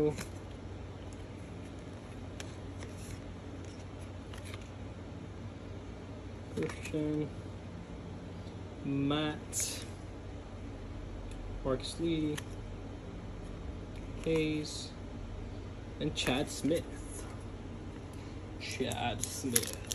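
Stiff cards slide and tap against each other.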